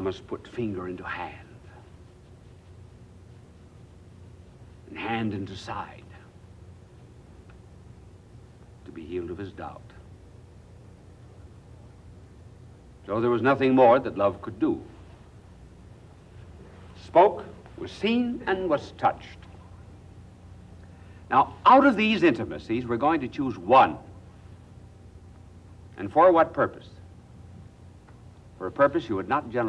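An elderly man speaks slowly and deliberately, with long pauses, into a microphone.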